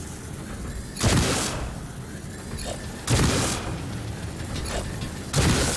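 A heavy rifle fires a few loud, booming shots.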